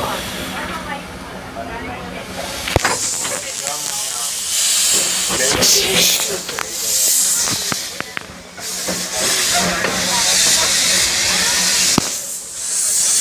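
Train wheels rumble and clack on rails.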